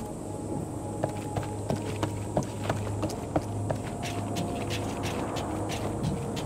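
Footsteps clack on a wooden rope bridge.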